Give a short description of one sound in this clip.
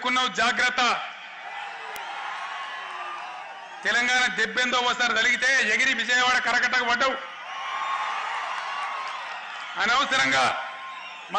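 A large crowd cheers and murmurs.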